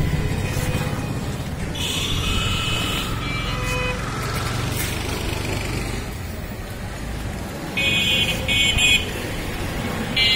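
A knife slices through meat.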